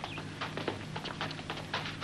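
Feet land with a thud on the ground as a man leaps down a path.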